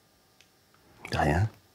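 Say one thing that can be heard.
A man answers with a single low, curt word close by.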